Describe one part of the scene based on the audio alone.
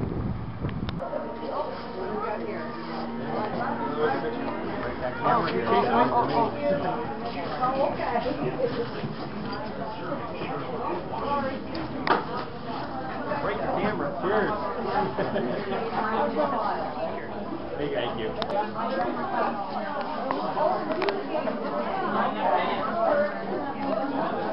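A crowd of men and women chatter indoors.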